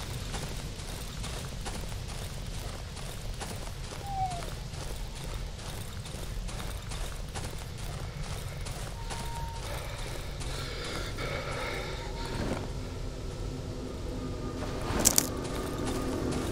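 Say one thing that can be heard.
Slow footsteps tread softly.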